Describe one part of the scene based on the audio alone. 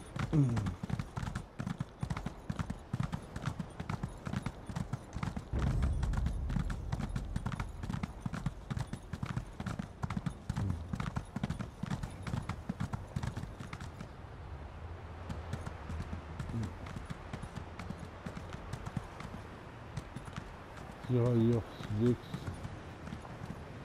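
A horse gallops over sand.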